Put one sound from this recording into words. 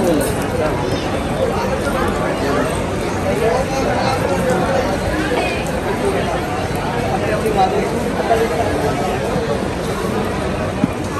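A crowd of people murmurs and chatters all around.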